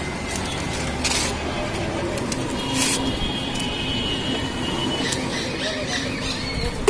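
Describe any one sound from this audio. Paper rustles as a man folds it.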